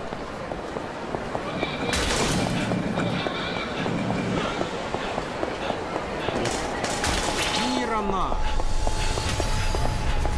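A crowd murmurs in a busy street.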